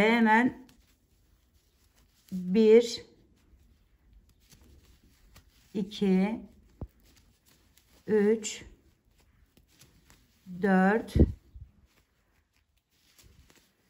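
Yarn rustles softly as a hook pulls it through stitches.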